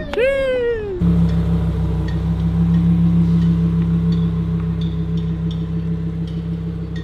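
A sports car engine rumbles as the car pulls away.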